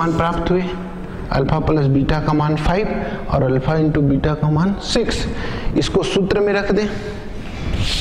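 A man speaks calmly and clearly, explaining.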